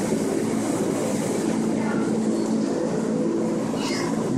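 A claw machine's motor whirs as the claw moves.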